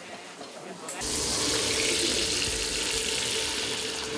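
Eggs sizzle loudly in a hot frying pan.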